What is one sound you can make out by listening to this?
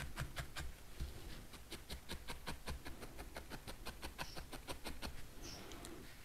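A felting needle pokes rapidly into wool with quick soft clicks.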